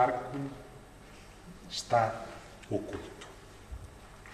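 A man speaks calmly into a microphone in an echoing room.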